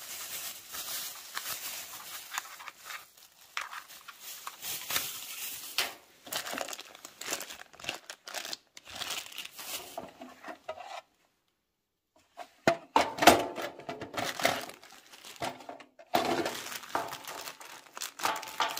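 Plastic bags crinkle and rustle in gloved hands.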